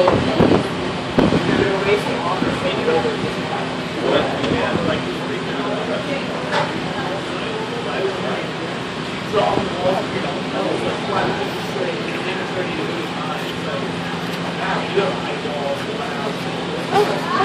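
A knife taps and chops on a cutting board.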